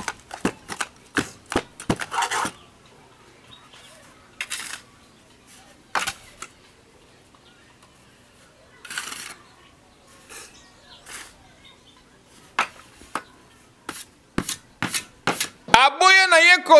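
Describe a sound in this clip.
A shovel scrapes and knocks against a metal brick mould.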